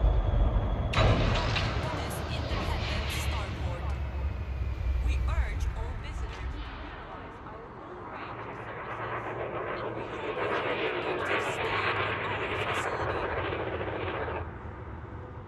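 A spaceship's thrusters hiss and roar as it moves.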